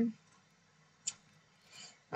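A rifle's metal parts click once as it is handled.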